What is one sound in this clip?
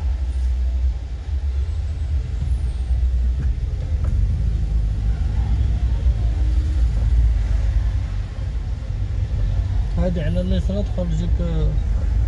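A car engine hums with a steady low rumble while driving.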